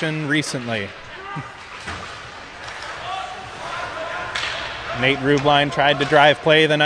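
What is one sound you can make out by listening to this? Ice skates scrape and glide across the ice in a large echoing rink.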